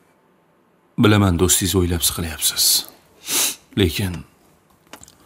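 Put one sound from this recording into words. An elderly man speaks slowly and seriously, close by.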